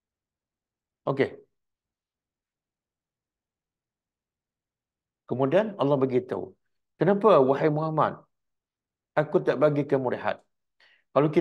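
An older man speaks calmly into a close microphone, in short phrases with pauses.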